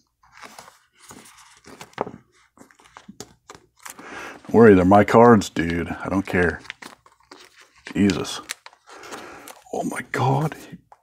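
Plastic card sleeves crinkle and rustle as they are handled.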